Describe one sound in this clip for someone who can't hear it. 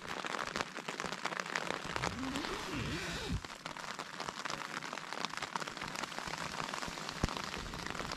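Tent fabric rustles and crinkles close by.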